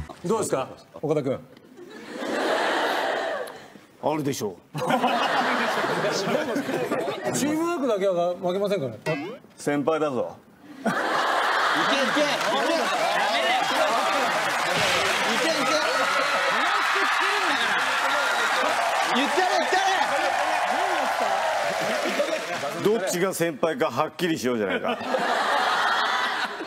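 Young men talk and joke with animation.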